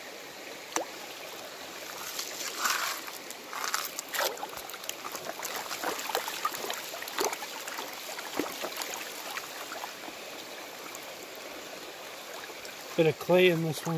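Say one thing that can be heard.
Water sloshes and swirls in a plastic pan being shaken.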